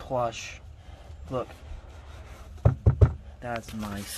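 A hand pats and rubs a carpet.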